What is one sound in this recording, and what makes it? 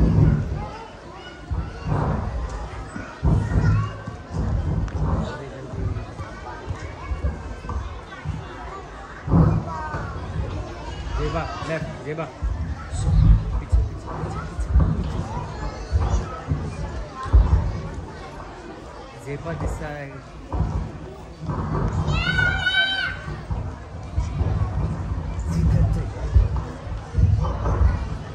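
Children speak lines through a microphone in a large echoing hall.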